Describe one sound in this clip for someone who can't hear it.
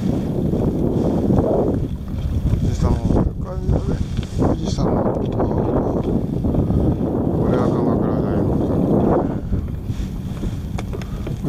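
Wind blusters across open water outdoors.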